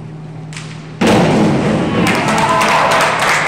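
A diver splashes into a pool.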